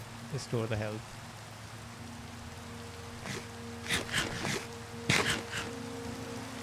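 A young man speaks casually into a nearby microphone.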